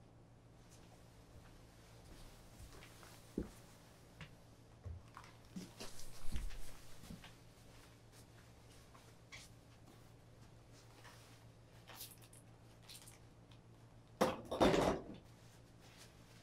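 Footsteps shuffle on a carpeted floor.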